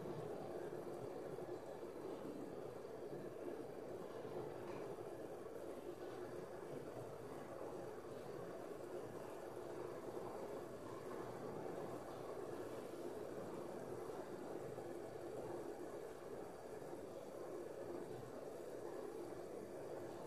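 A gas burner roars steadily under a covered pan.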